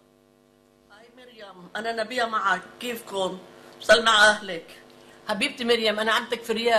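An elderly woman speaks calmly over an online call through loudspeakers.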